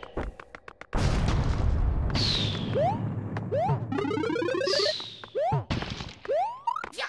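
Rumbling video game explosions boom.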